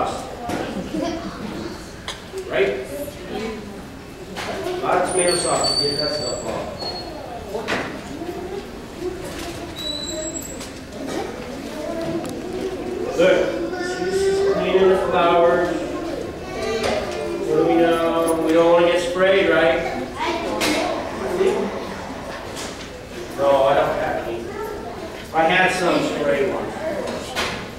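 A man speaks calmly and clearly to a group, slightly distant.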